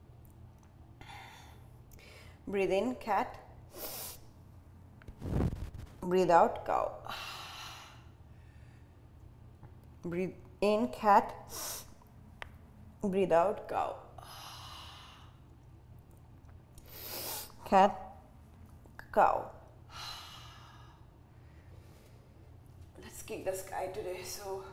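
A young woman speaks calmly and clearly close to a microphone.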